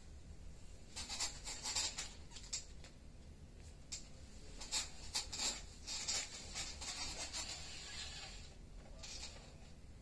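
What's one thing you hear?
Bedding rustles as a boy shifts and climbs on a bed.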